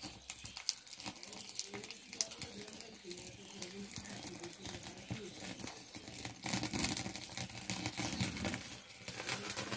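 A wood fire crackles.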